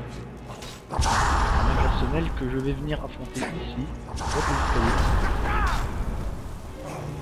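Weapons clash and strike in a close fight.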